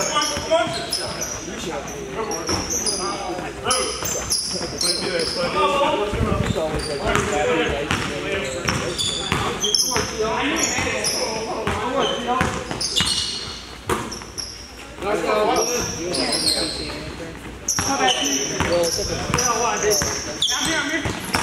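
Sneakers squeak sharply on a hard floor, echoing in a large hall.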